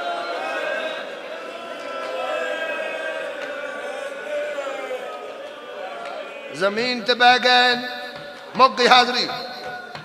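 A man speaks through a microphone, chanting in a drawn-out, mournful singing voice that grows loud and forceful.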